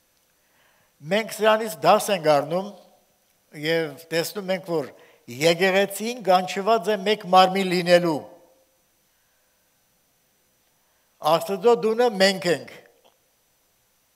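An elderly man speaks slowly and solemnly into a microphone, with pauses.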